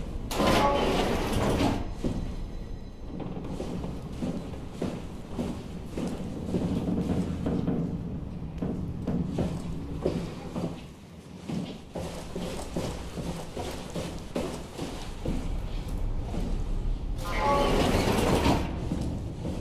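A heavy metal door slides open with a mechanical whir.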